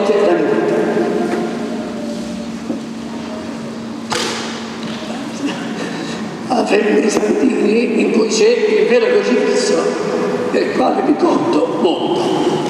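An elderly man preaches with animation into a microphone in an echoing hall.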